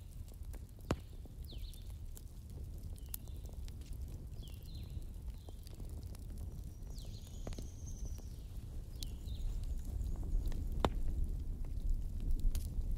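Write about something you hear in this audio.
Burning wood crackles and pops sharply now and then.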